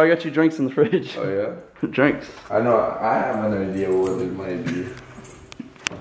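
A young man talks and laughs close by.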